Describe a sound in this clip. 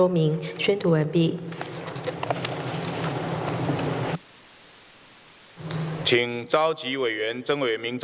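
A middle-aged man speaks formally into a microphone in a large echoing hall.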